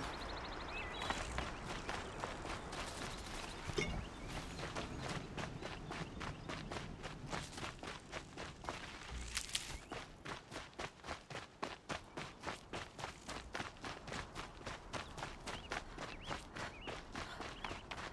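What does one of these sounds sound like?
Footsteps run quickly over rocky ground.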